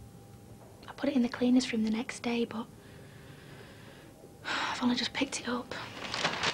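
Another young woman speaks calmly, close by.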